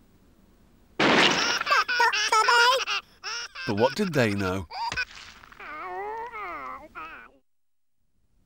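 A high, squeaky cartoon voice babbles and grunts with animation.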